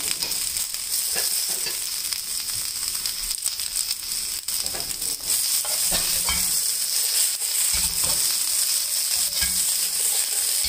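Green beans sizzle steadily in a hot pan.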